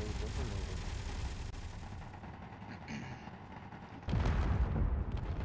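A heavy engine rumbles low.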